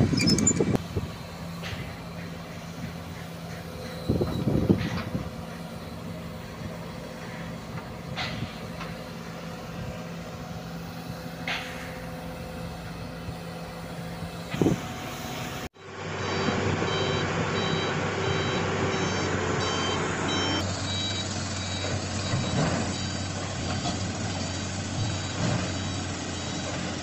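An excavator's diesel engine idles with a steady low rumble.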